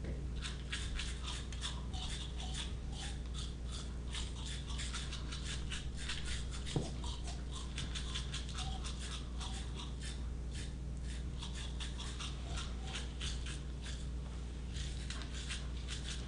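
A woman makes rhythmic mouth sounds through a microphone.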